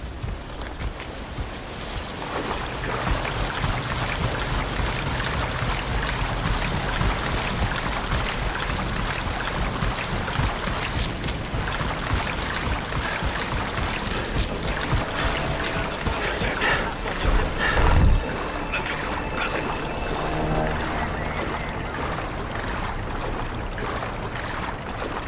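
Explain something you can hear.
Water rushes and splashes steadily.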